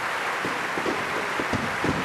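Fireworks crackle and pop.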